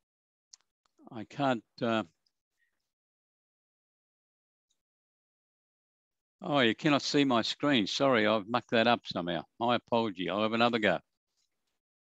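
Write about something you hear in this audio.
A man speaks calmly through a headset microphone on an online call.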